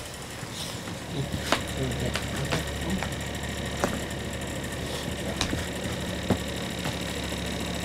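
Flip-flops slap softly on the floor as a person walks.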